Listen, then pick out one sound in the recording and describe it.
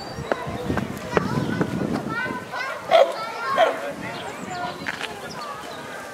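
A California sea lion pup splashes out of the water onto a rock.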